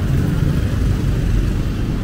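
A car drives by on a wet road.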